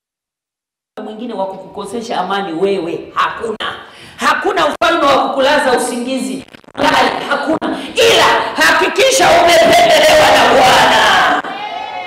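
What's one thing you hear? A woman preaches loudly and with animation through a microphone.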